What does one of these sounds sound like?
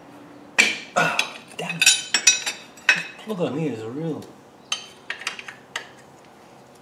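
A metal tool clinks and scrapes against metal.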